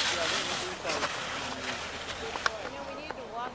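Skis scrape and hiss across hard snow.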